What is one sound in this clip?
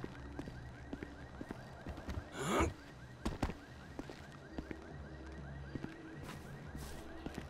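Footsteps crunch slowly over dirt and gravel.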